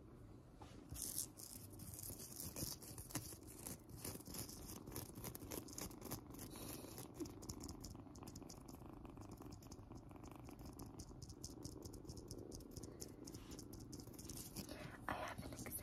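Long fingernails tap and scratch close by, in quick bursts.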